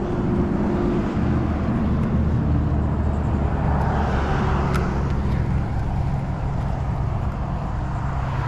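A fishing reel clicks as its handle is cranked.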